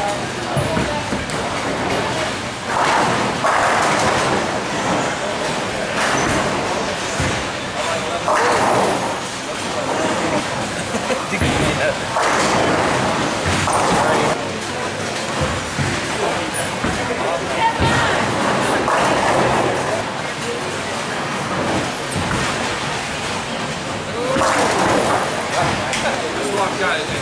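Bowling balls roll along wooden lanes with a low rumble.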